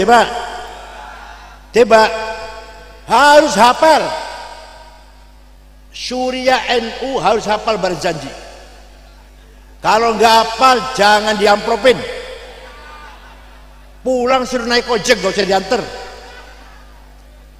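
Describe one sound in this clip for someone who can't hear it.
An elderly man speaks slowly into a microphone in short phrases, with a strong echo.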